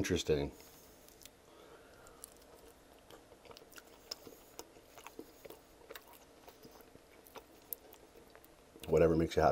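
A man chews and bites into a saucy chicken wing close to the microphone.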